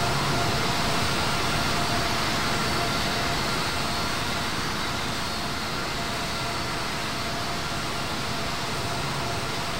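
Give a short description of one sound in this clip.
Jet engines roar steadily as an airliner flies.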